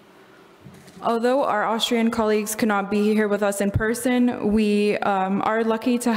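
A young woman speaks clearly through a microphone.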